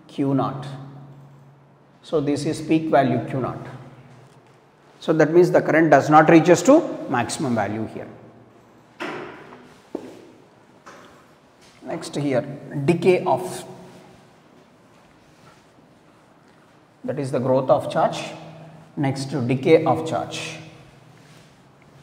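A man speaks nearby in a calm lecturing voice.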